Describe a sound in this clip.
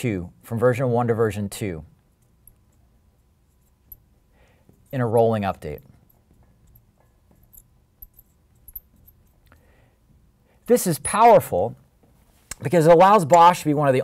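A man speaks calmly and explains, close to a microphone, with pauses between phrases.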